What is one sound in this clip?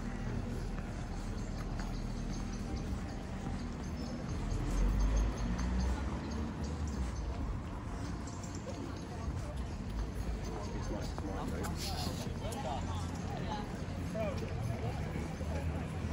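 Footsteps tread on a stone pavement.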